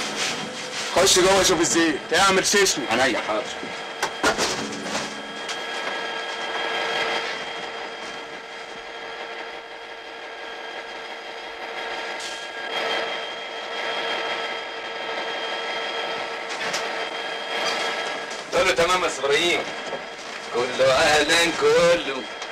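A man speaks with agitation, close by.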